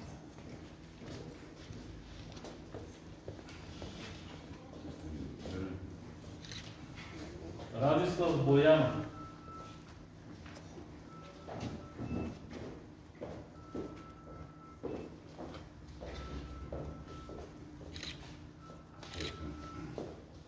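A man reads out quietly from a distance in a room.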